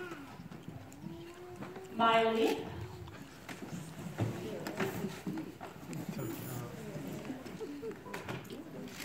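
A woman speaks into a microphone over a loudspeaker in an echoing hall.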